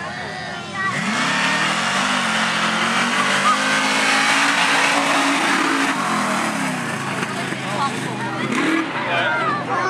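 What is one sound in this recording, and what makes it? A truck engine roars loudly as the truck races across a dirt track.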